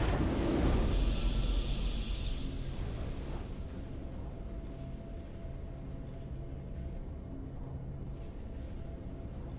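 A triumphant game fanfare plays.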